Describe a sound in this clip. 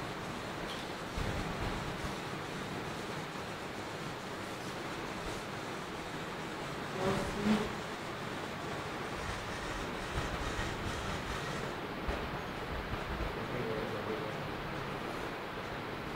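Paper cards tap softly onto a wooden floor.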